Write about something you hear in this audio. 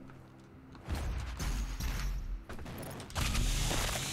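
A shotgun fires with loud blasts.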